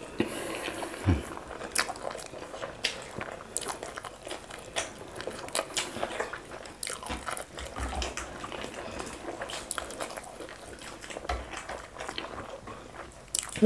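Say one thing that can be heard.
A man chews food noisily close to a microphone.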